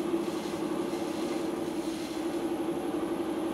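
Wet clay squelches and rubs under a potter's hands.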